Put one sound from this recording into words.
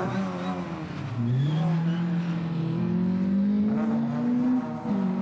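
A car engine revs hard and rises in pitch as the car slides past.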